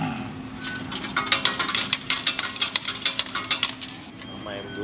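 Coins clatter and jingle into a metal tray.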